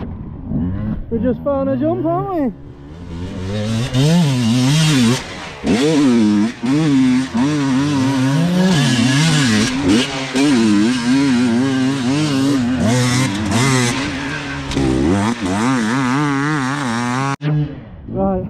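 A dirt bike engine revs hard and whines up and down.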